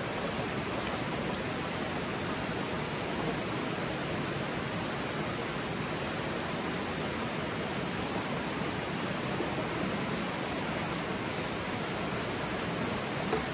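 A stream flows and splashes steadily over rocks nearby.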